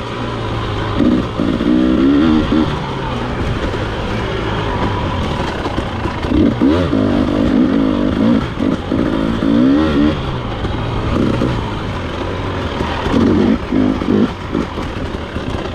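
Tyres crunch over dirt and leaves.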